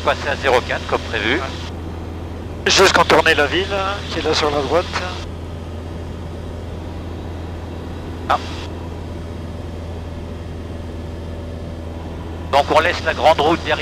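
A man talks over a headset intercom, heard close and clearly, in short bursts.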